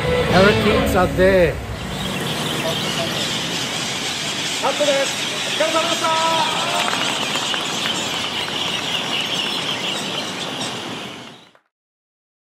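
A dense flock of parakeets screeches and chatters loudly in trees.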